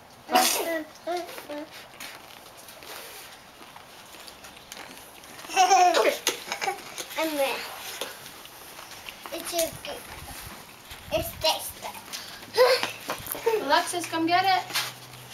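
Young children babble and squeal excitedly close by.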